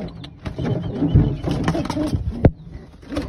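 A pigeon flaps its wings loudly close by.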